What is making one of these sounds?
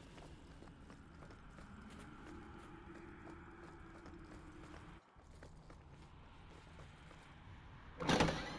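Footsteps tread steadily on a stone floor.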